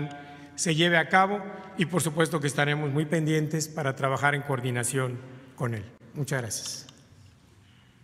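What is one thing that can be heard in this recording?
A man speaks formally into a microphone.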